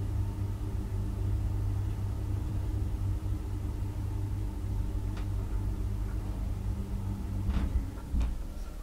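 An elevator motor hums steadily.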